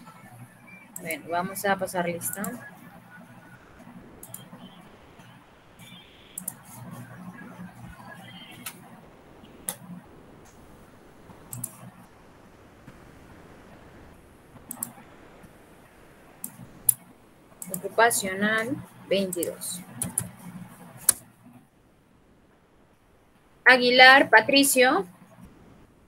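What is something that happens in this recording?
A young woman speaks calmly through an online call microphone, in short bursts.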